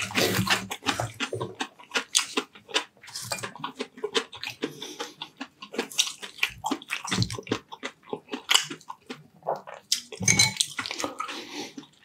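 Crispy fried batter crackles as a man's fingers break it apart.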